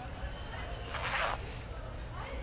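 A zipper rasps open on a bag.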